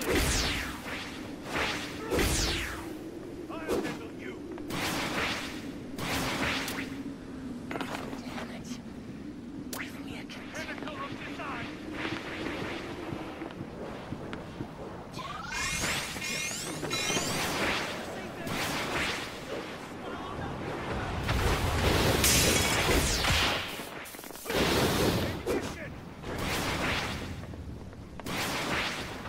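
Crackling energy blasts whoosh in short bursts.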